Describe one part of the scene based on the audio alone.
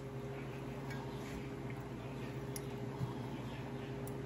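A spatula scrapes and taps against a metal bowl.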